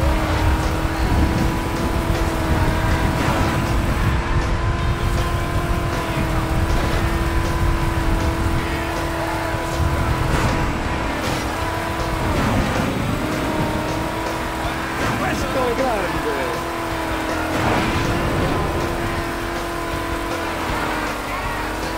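A small car engine whines steadily at high speed.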